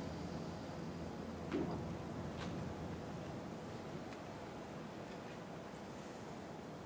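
A grand piano plays softly.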